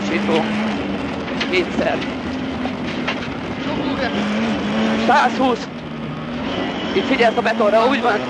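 Tyres rumble and crunch over a gravel road.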